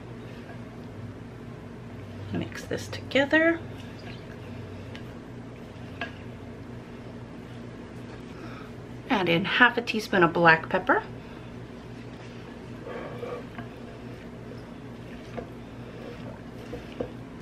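A spatula stirs and scrapes a thick, wet mixture in a glass bowl.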